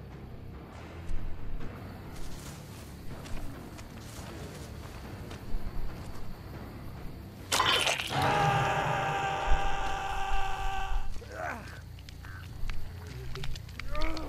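Heavy footsteps thud on soft ground.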